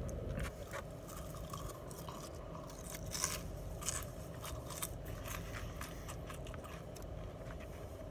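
A man chews food with his mouth close by.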